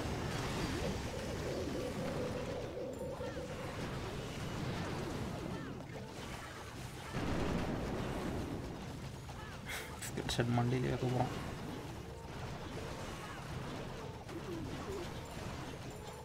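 Game battle sounds of explosions, clashing and magic blasts rumble on without a break.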